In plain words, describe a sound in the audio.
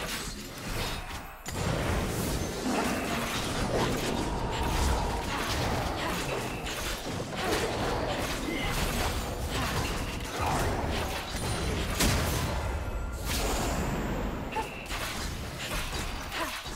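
Magic spell effects whoosh and crackle in quick bursts.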